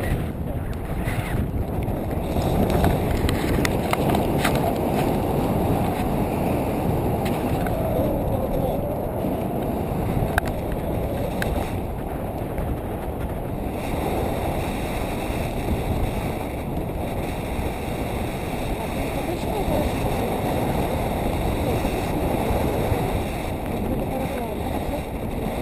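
Strong wind rushes loudly past a microphone outdoors.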